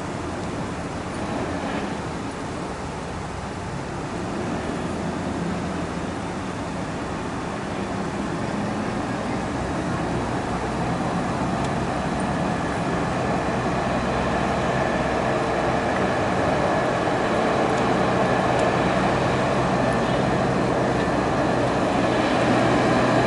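A police car drives closer, its engine humming.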